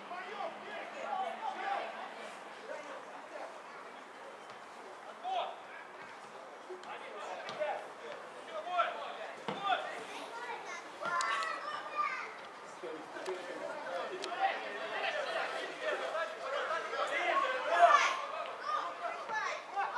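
Young men shout and call out to each other outdoors across an open field.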